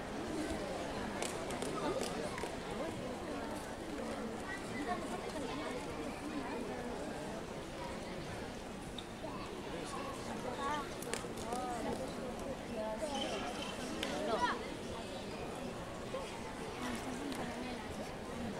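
A gymnast's hands slap and creak on a wooden bar.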